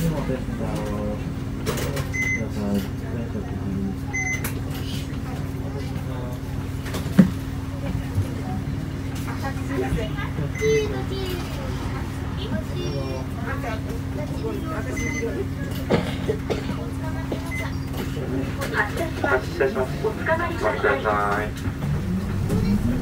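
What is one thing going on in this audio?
A vehicle engine idles with a steady low hum, heard from inside.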